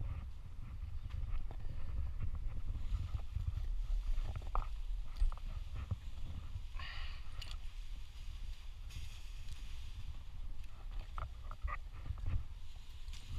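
Branches rustle and creak as a climber grabs and pulls on them.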